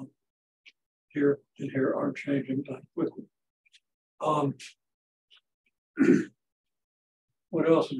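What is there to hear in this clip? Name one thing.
An elderly man lectures calmly and clearly, close by, in short bursts of speech.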